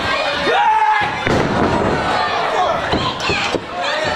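Wrestlers thud onto a wrestling ring.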